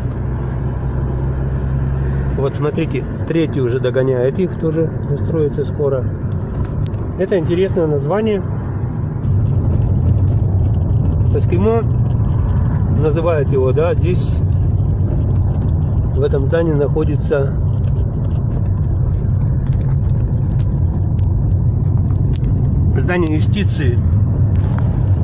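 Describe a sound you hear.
A car engine hums low and steady while driving.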